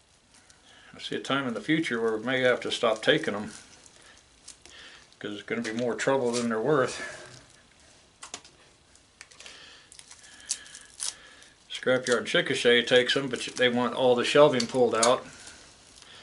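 A man speaks calmly nearby, in short bursts.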